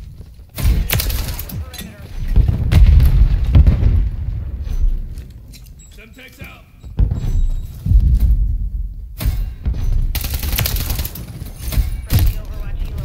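A rifle fires loud gunshots.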